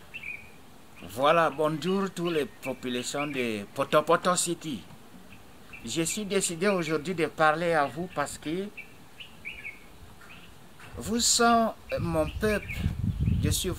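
A middle-aged man speaks calmly and with animation, close by.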